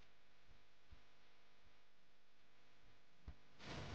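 Hands rub and pat flour over dough.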